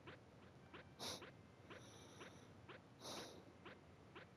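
Short electronic chirps sound as a game character jumps.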